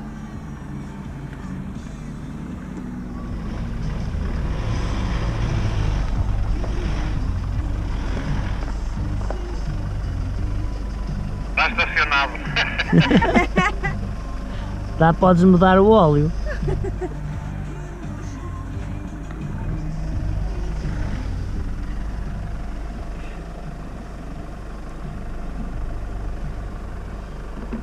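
A pickup truck's engine rumbles low and steady.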